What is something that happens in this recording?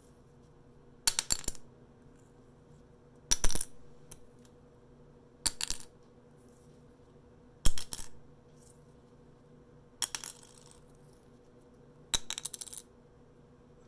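Plastic guitar picks click and scrape on a glass surface.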